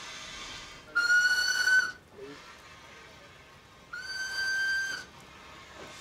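A steam locomotive's whistle blows twice.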